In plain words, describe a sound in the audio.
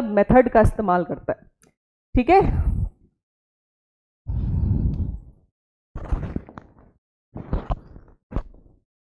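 A young woman speaks with animation into a close microphone, in short bursts with pauses.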